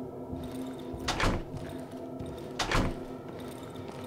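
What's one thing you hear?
A heavy wooden door thumps open and bangs.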